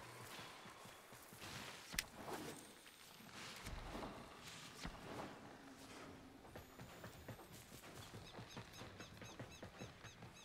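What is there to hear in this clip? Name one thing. Blades whoosh and strike in quick, repeated blows.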